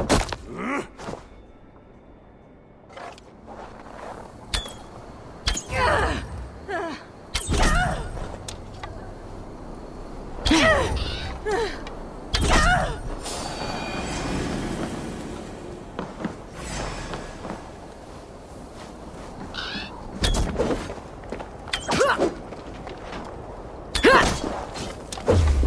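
Blades strike and slash with sharp hits.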